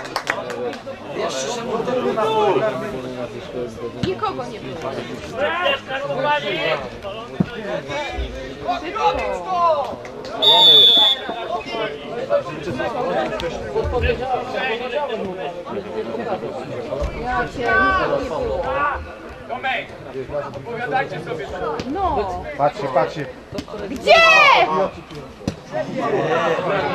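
Young men shout and call to each other outdoors.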